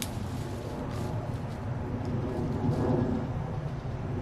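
A man rustles a plastic bag.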